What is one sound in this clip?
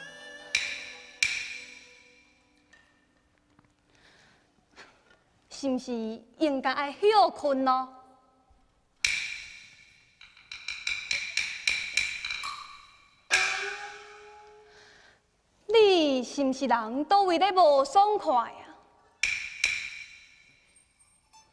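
Percussion clappers strike sharp, quick beats.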